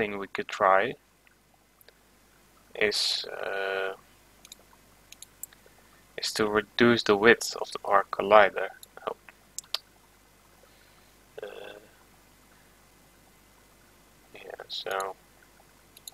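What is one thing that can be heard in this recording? A young man talks calmly and closely into a microphone, in short bursts with pauses.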